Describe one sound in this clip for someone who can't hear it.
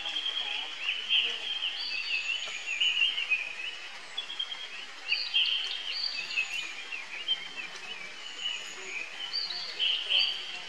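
A baby monkey squeals shrilly again and again.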